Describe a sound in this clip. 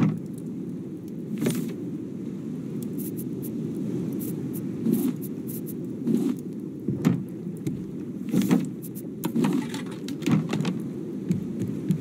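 Short soft clicks sound as menus open and close.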